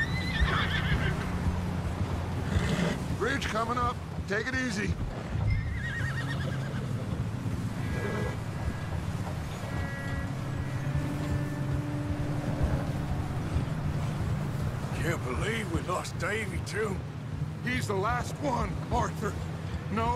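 Horse hooves thud steadily on snow.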